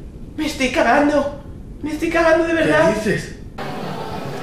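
A young woman speaks urgently close by.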